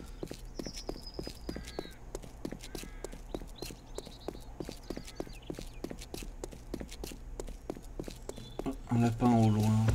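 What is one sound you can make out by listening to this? Footsteps tap steadily on a hard road.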